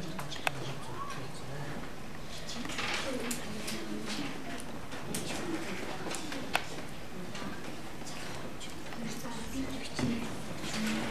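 Children murmur and talk quietly nearby in a room.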